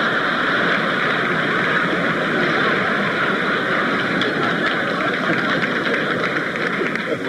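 An elderly man speaks with amusement.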